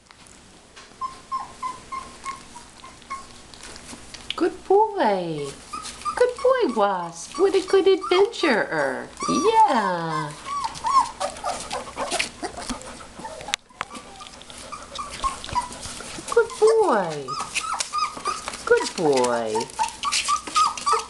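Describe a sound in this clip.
Young puppies whine and squeal in high, falling cries.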